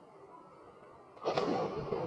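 A person splashes into water.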